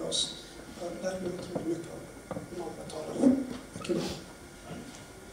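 A middle-aged man speaks calmly into a microphone in a large room.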